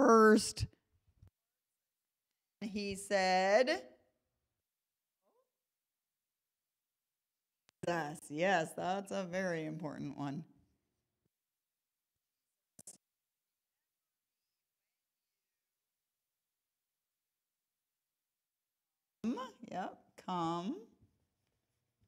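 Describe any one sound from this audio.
A woman speaks calmly into a microphone, pausing now and then.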